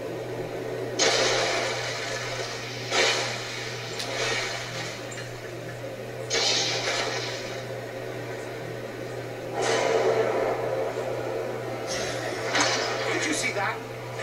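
A video game energy beam fires in loud crackling, hissing bursts.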